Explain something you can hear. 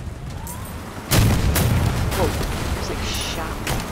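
Metal crashes as a truck flips over.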